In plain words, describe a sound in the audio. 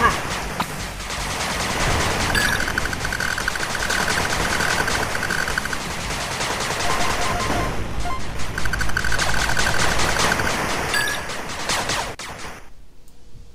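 Small arms fire rattles in rapid bursts.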